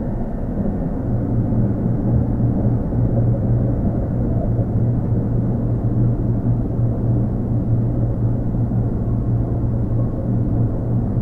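A train's motors hum steadily while it stands idle.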